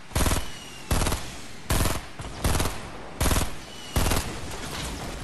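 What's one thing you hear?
Gunshots fire in loud, evenly spaced bursts.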